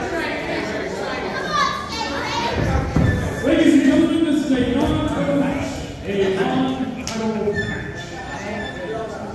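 A crowd of people talks and shouts in an echoing hall.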